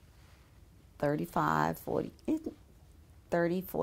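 An elderly woman speaks calmly and close by, through a microphone.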